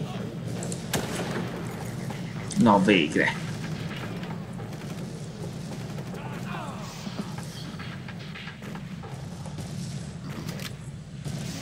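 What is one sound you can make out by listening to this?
A rifle shot cracks.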